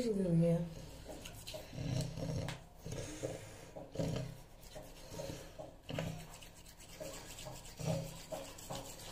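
A toothbrush scrubs against teeth.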